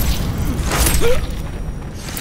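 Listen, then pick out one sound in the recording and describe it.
A heavy blow lands with a thud.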